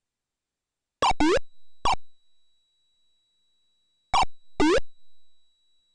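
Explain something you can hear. Short electronic game sound effects chirp in quick bursts.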